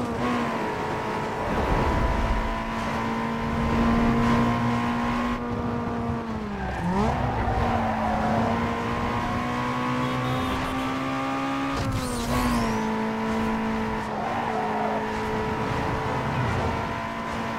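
A racing car engine roars at high revs, dropping briefly in pitch as it shifts gears.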